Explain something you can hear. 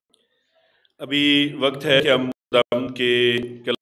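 A man speaks with emphasis into a microphone, heard through a loudspeaker system.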